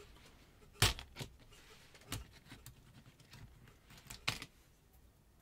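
Plastic parts click and knock as a small device is taken apart.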